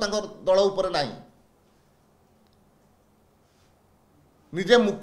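A middle-aged man speaks calmly into microphones close by, with pauses.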